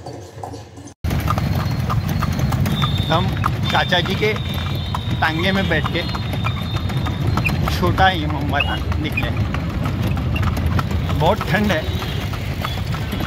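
Horse hooves clop on the road.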